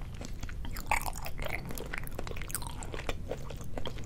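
Chopsticks clink against a plate.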